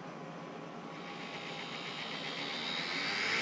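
A small fan whirs and its hum slowly rises in pitch.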